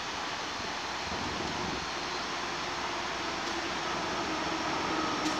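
A diesel locomotive rumbles as it approaches from far off.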